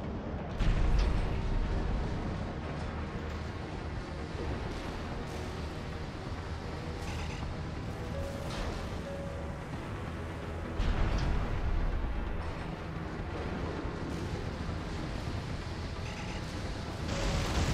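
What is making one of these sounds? A mech's thrusters roar steadily.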